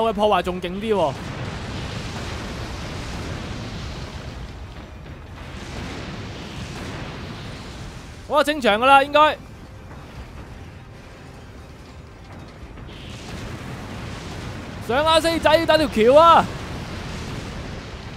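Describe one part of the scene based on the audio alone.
Energy blasts fire with a rushing whoosh.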